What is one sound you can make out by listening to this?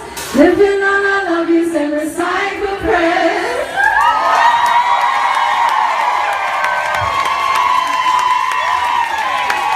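A woman sings loudly through a microphone.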